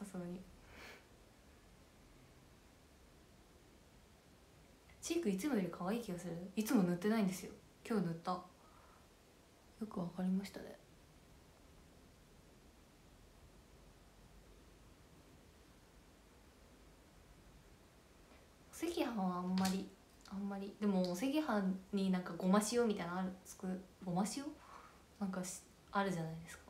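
A young woman talks calmly and close to a microphone, in bursts with pauses.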